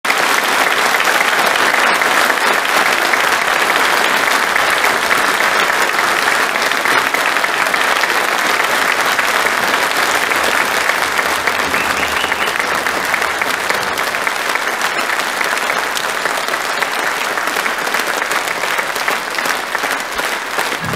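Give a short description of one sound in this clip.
A large crowd applauds loudly in a big echoing hall.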